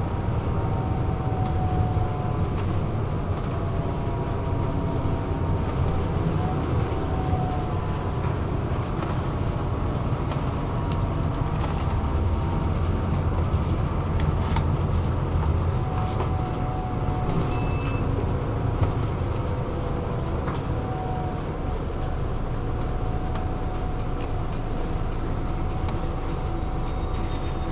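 A train hums and rumbles steadily from inside.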